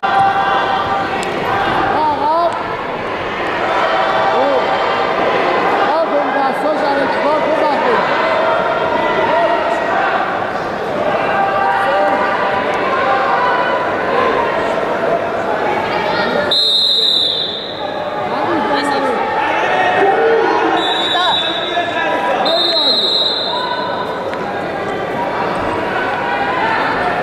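A crowd of men and women chatters and calls out in a large echoing hall.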